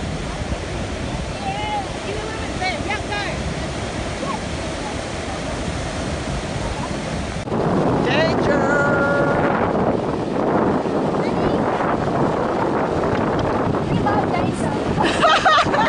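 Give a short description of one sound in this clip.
Waves wash and break on the shore.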